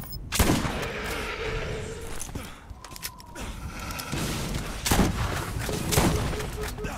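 A gun fires loud, booming shots.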